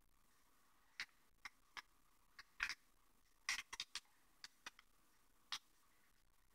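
Paper money crinkles softly as it is folded by hand.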